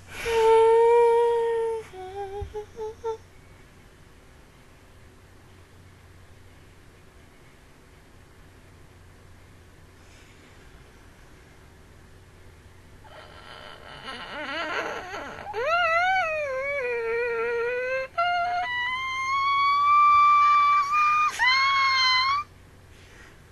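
A young woman squeals and shrieks with excitement, close to a microphone.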